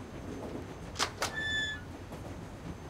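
A heavy metal door clanks open.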